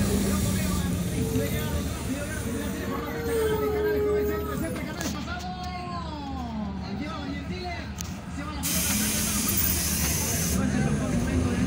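Passengers chatter nearby inside a bus.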